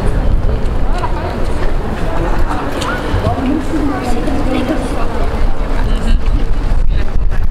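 A crowd of people chatters nearby in an open outdoor square.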